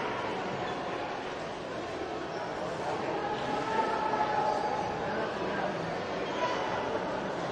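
A crowd of children and adults chatter in a large echoing hall.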